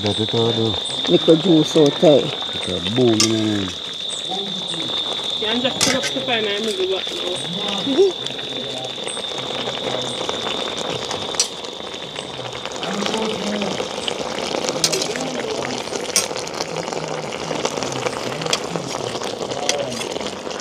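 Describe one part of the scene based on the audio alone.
A metal ladle clinks and scrapes against a pot.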